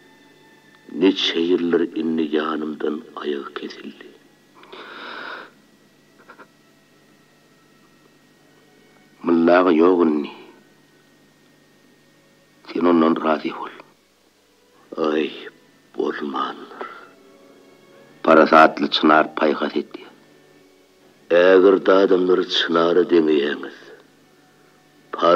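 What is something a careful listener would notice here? An elderly man sings in short phrases with pauses between them.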